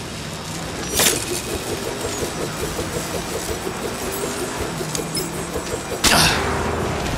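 A small flying blade whirs steadily as it flies.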